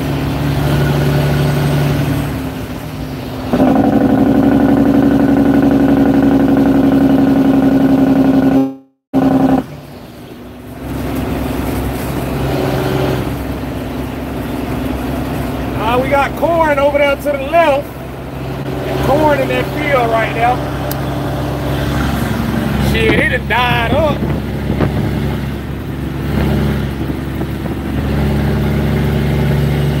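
A large vehicle's engine rumbles steadily while driving.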